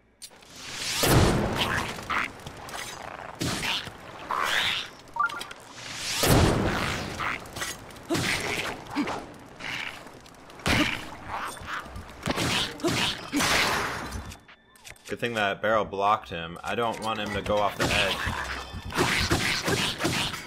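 Fiery explosions burst with loud booms.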